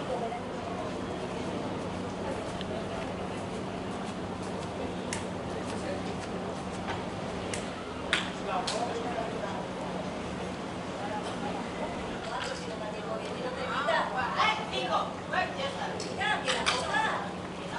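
Many people chatter and call out in the distance outdoors.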